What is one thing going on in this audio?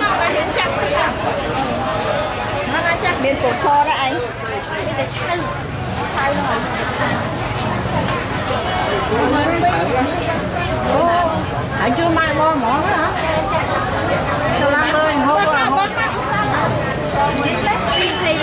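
Voices chatter all around outdoors.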